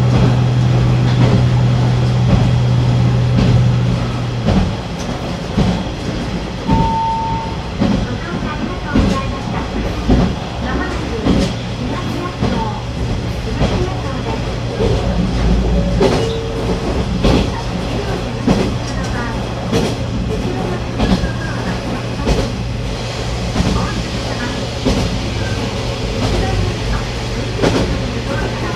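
A train's diesel engine drones steadily.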